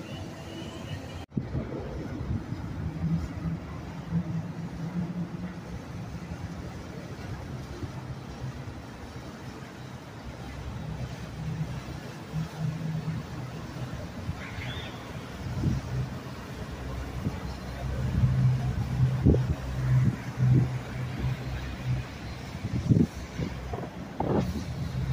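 A motorboat engine hums steadily and grows louder as the boat passes close by.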